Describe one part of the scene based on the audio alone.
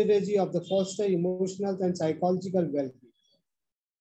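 An elderly man speaks calmly and close to a microphone.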